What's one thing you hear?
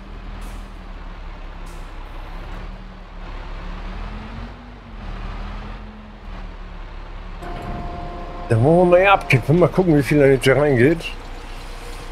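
A truck engine hums steadily as the truck rolls slowly forward.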